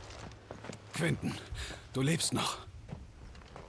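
A man exclaims with surprise, close by.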